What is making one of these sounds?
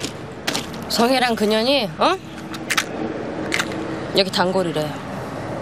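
A young woman speaks firmly, close by.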